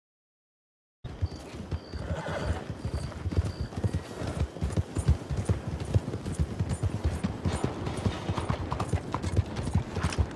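Horse hooves thud steadily at a gallop.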